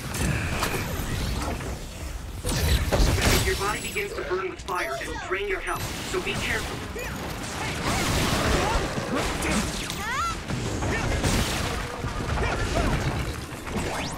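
Sword slashes and impacts clash in a fast fight.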